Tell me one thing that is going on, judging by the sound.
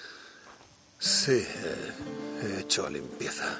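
A man speaks quietly and sadly, close by.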